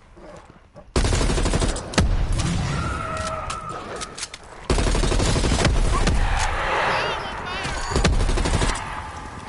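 Gunfire and explosions boom loudly.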